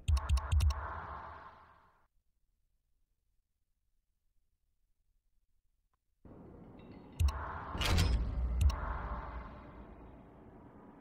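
Heavy booming menu sounds hit and ring out.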